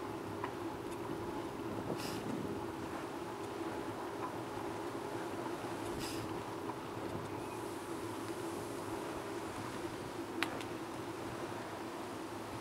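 Bicycle tyres hum over paving stones.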